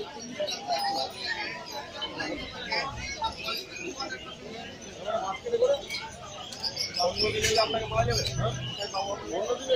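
Puppies whine and yelp.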